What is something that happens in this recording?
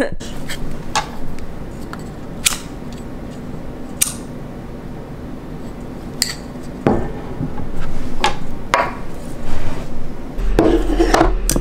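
A glass candle jar clinks and knocks on a hard surface.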